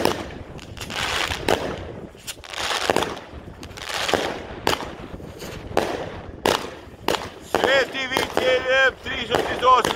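Fireworks whoosh and hiss as they shoot upward.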